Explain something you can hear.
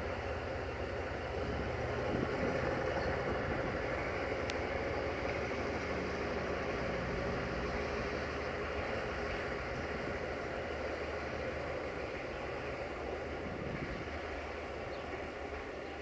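A diesel locomotive engine rumbles steadily as it rolls slowly away.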